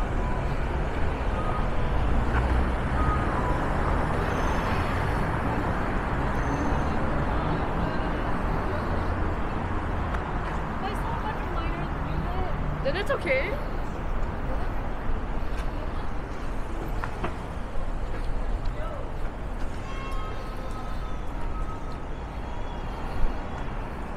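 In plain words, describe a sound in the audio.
Traffic rumbles steadily along a nearby city street.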